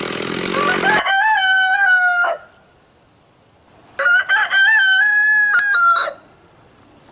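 A rooster crows twice.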